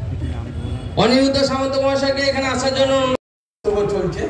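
A man chants loudly through a microphone over a loudspeaker.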